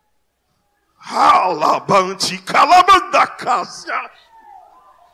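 A man preaches loudly and with animation through a microphone in a large echoing hall.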